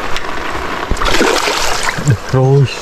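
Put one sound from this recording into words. Water splashes loudly as a fish thrashes in the shallows.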